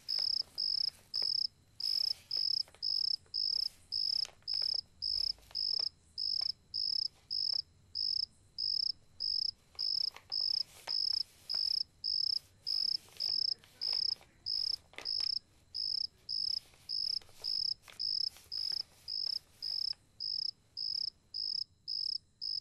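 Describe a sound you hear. Crayon scratches and rubs on paper.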